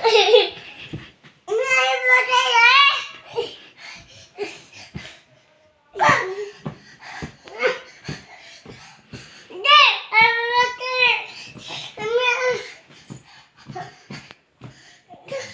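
A blanket rustles as a toddler tugs at it.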